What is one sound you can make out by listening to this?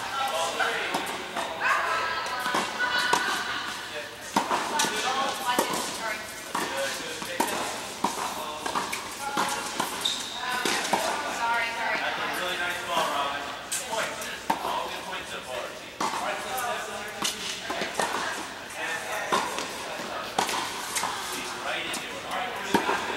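Tennis rackets strike a ball back and forth in a large echoing indoor hall.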